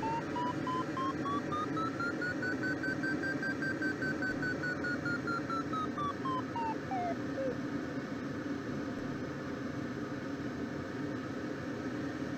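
Wind rushes steadily past a glider's cockpit.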